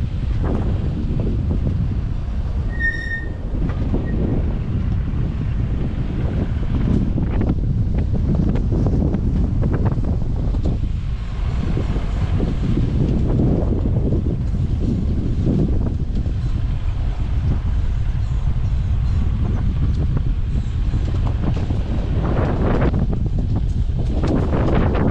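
A vehicle engine rumbles steadily as it drives along outdoors.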